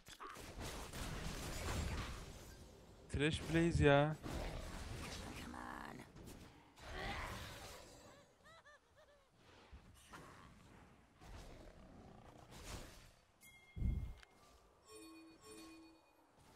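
Video game spell effects whoosh and chime.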